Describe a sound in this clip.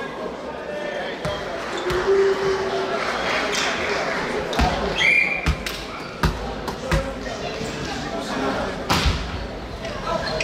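Players call out to each other.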